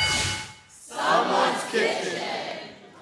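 A woman talks with animation.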